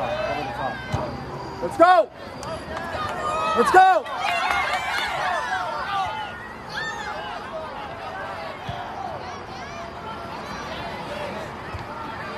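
A crowd of spectators cheers and calls out nearby.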